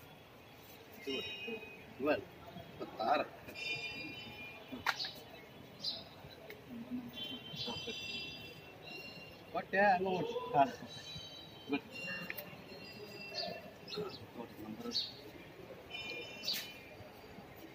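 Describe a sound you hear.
Caged birds chirp and twitter.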